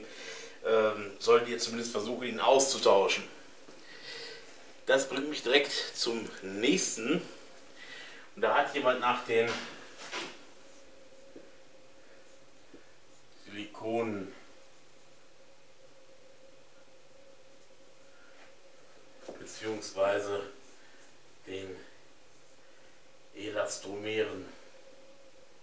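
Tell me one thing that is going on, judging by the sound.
A man speaks in a calm, lecturing voice nearby.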